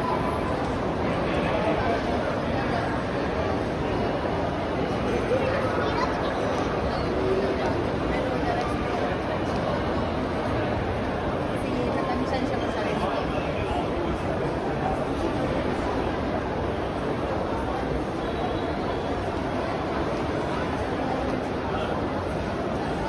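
A crowd murmurs and chatters throughout a large echoing hall.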